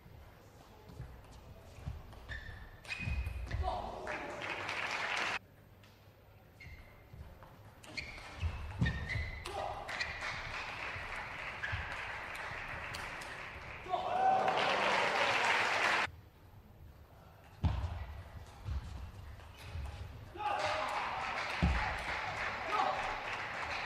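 A table tennis ball clicks quickly back and forth between paddles and table.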